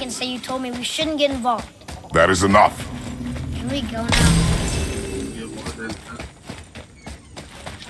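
Heavy footsteps run across stone.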